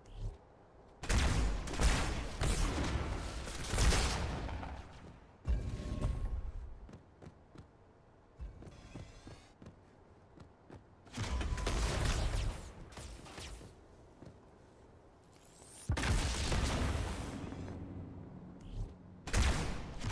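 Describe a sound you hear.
Energy weapons fire in loud, crackling bursts.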